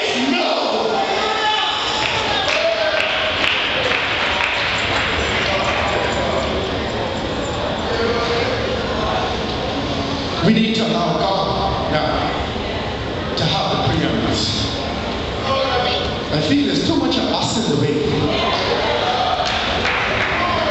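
A man speaks through loudspeakers in a large echoing hall.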